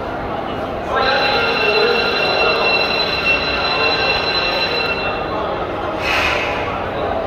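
A crowd cheers as a race begins.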